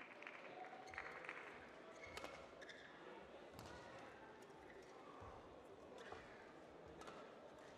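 Rackets strike a shuttlecock back and forth with sharp pops.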